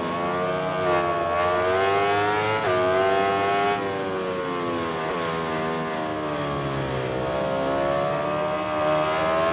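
A motorcycle engine revs high and shifts gears as it speeds along.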